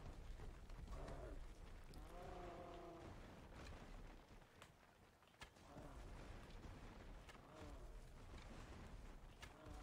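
A large beast roars and grunts.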